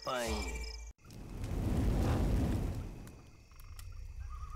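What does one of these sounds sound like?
A fire flares up with a loud roaring whoosh.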